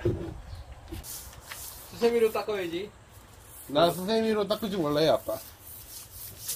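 A stiff brush scrubs a wet wooden surface.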